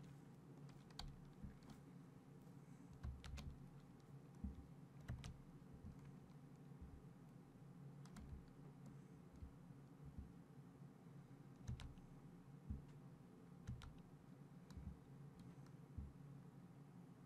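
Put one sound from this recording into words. A ship's engine hums low and steady.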